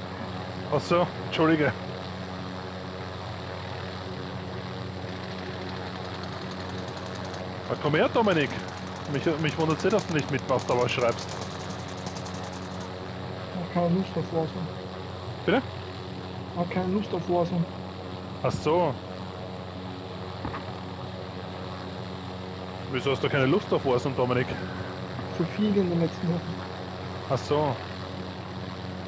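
A helicopter's rotor and engine drone steadily.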